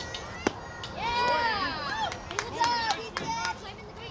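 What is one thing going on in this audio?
Young girls shout and cheer outdoors.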